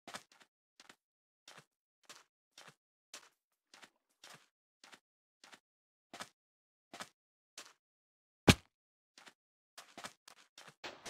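Footsteps crunch on sand at a steady walking pace.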